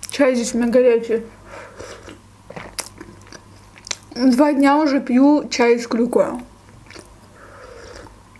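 A young woman sips a hot drink from a mug.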